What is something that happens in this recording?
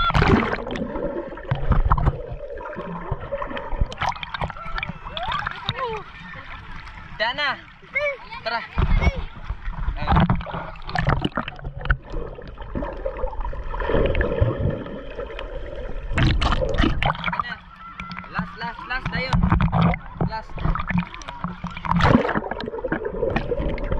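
Bubbles gurgle, muffled underwater.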